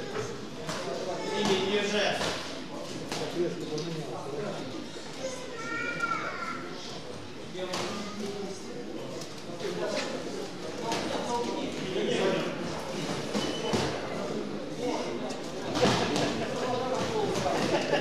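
Boxers' feet shuffle and squeak on a canvas ring floor.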